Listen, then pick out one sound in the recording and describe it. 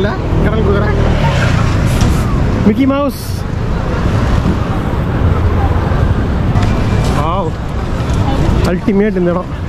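A crowd of passers-by murmurs and chatters outdoors on a busy street.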